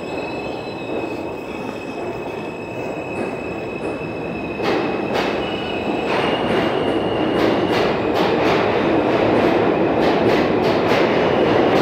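A subway train rumbles past close by, growing louder as it speeds up.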